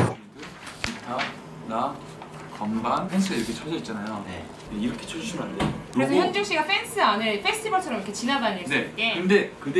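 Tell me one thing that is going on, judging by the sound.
Men talk calmly close by.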